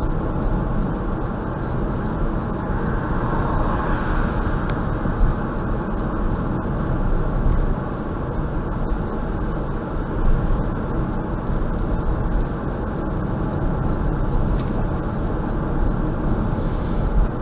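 Wind rushes against a moving car.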